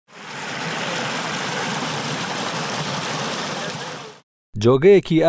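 Water gushes and splashes down a small channel close by.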